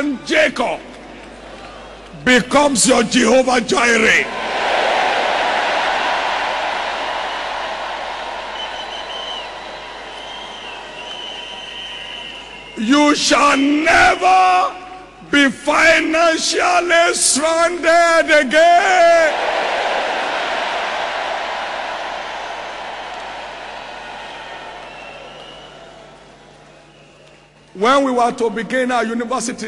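A man preaches loudly and with animation through a microphone, his voice ringing in a large echoing hall.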